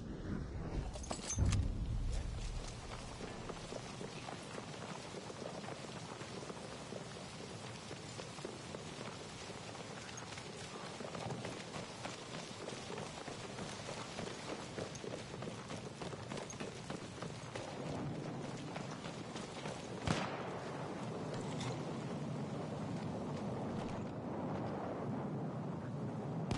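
Distant gunfire and explosions rumble and crack.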